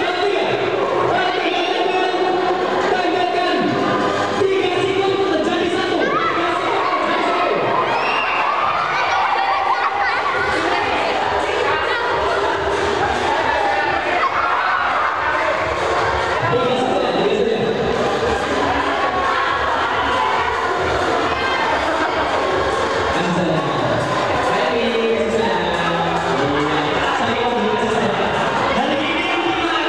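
A young man talks through a microphone and loudspeaker.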